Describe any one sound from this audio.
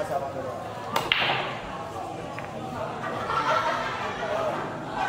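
Pool balls clack together and roll across the table.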